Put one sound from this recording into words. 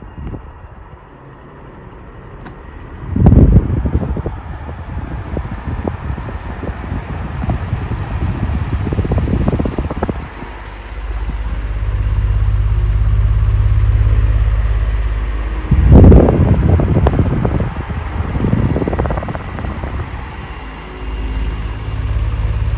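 An electric fan hums and whirs steadily close by.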